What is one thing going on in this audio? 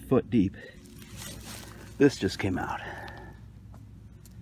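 A hand scrapes and digs through loose soil.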